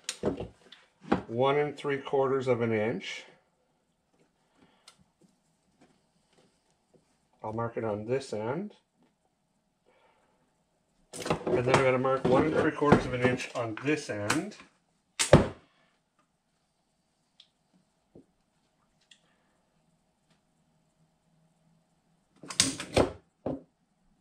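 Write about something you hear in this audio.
A man talks calmly and close by, in bursts with pauses.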